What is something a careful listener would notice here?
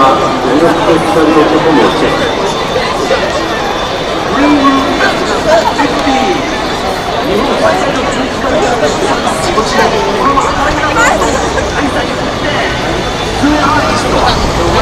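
A large crowd murmurs and chatters all around outdoors.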